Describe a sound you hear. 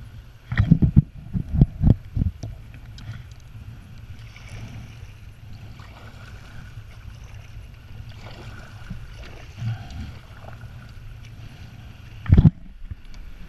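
Small waves lap and splash against a kayak's hull.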